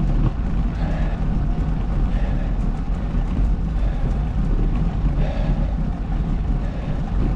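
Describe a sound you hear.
Tyres roll steadily over rough asphalt.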